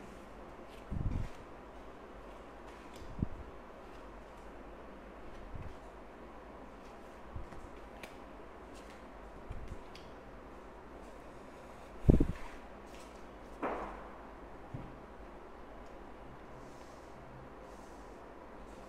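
Cards are laid down with soft taps on a table.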